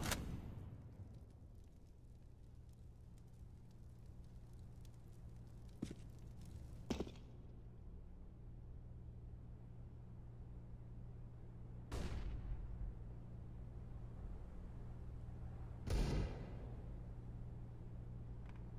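Footsteps tread on hard ground.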